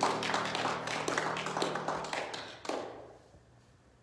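A tambourine shakes and jingles rapidly in an echoing hall, then stops and the sound rings away.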